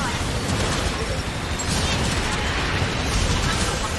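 Explosions thud and boom.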